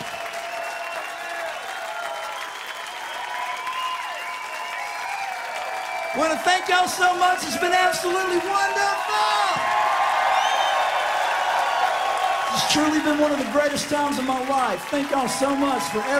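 A rock band plays electric guitars loudly on stage.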